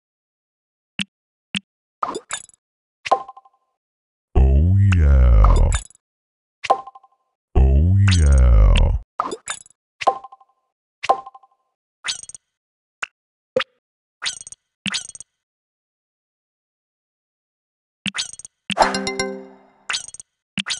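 Short electronic clicks and chimes sound as game menus open and close.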